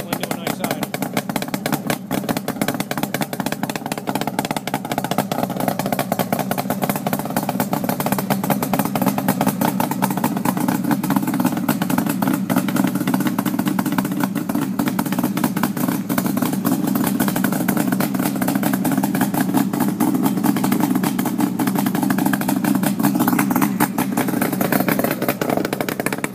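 A motorcycle engine idles loudly and steadily close by, with a deep rumbling exhaust.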